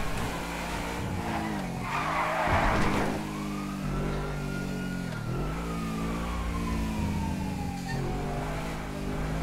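A car engine revs up and down as it drives.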